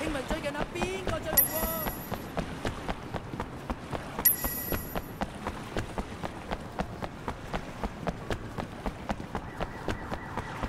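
Quick footsteps run on hard pavement.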